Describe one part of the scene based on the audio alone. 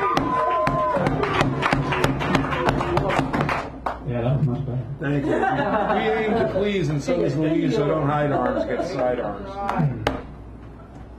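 A man talks and laughs through a microphone.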